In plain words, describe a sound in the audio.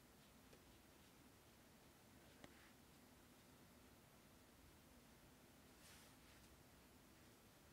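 A brush strokes softly across paper.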